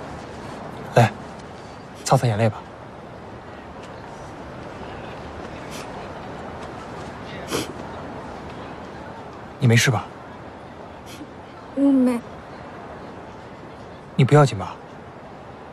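A young man speaks softly and gently, close by.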